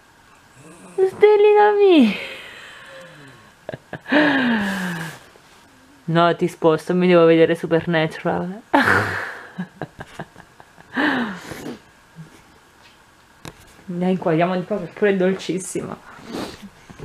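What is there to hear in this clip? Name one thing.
A small dog whines and grumbles close by.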